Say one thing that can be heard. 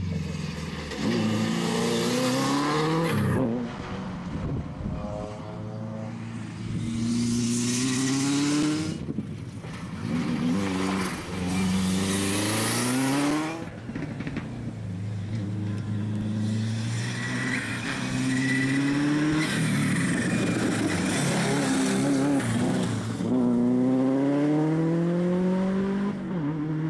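A rally car engine revs hard and roars past, rising and falling in pitch.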